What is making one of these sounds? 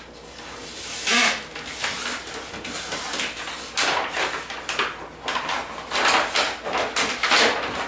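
Plastic film crinkles and rustles as it is handled.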